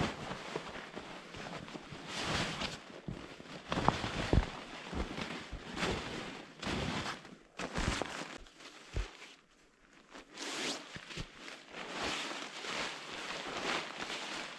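Boots crunch in snow.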